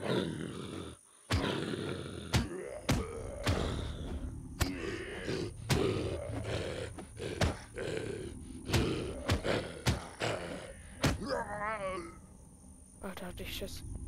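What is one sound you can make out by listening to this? Fists thump against a body in quick blows.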